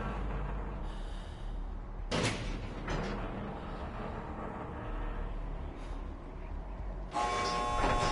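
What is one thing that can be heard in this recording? A metal switch panel clanks as a lever is worked.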